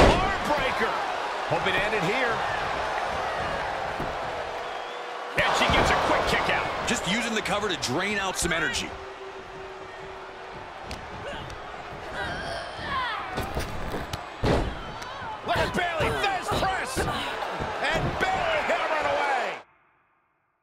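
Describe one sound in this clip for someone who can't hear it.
Bodies thud onto a wrestling ring mat.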